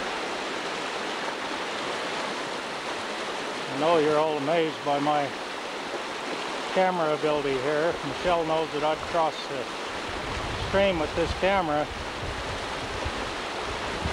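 Muddy floodwater rushes and churns loudly outdoors.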